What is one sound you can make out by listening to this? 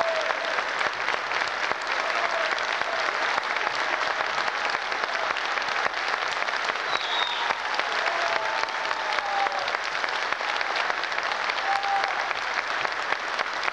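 A large audience claps and cheers steadily in an echoing hall.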